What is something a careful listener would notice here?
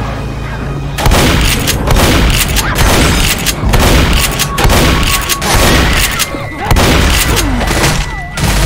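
A shotgun is pumped with a metallic clack between shots.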